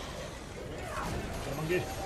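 Electric bolts crackle and buzz.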